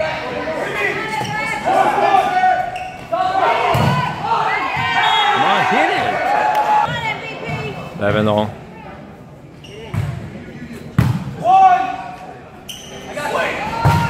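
A volleyball is struck with sharp slaps in an echoing hall.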